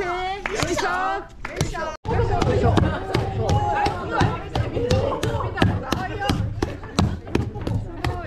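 Wooden mallets thud rhythmically into sticky rice.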